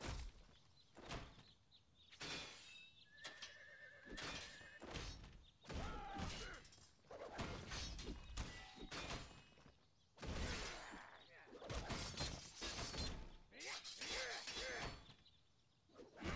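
Swords clash and clang in a fight.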